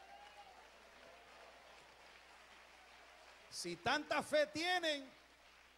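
An elderly man speaks loudly into a microphone in a reverberant hall.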